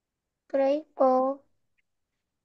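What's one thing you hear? A young child says two short words clearly through an online call.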